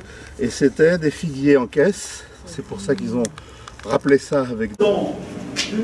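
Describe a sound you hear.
An elderly man speaks calmly and explains nearby.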